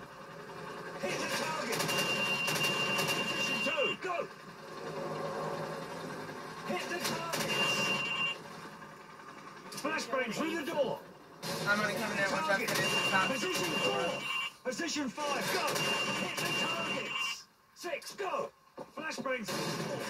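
Video game sounds play from a television's speakers.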